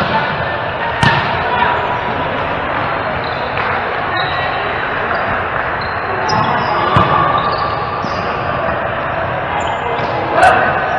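A volleyball is struck by hand in an echoing sports hall.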